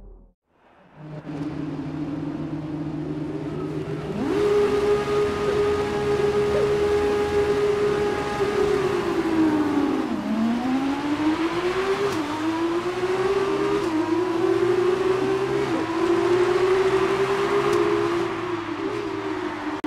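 A racing car engine idles and then revs loudly, rising and falling in pitch as gears change.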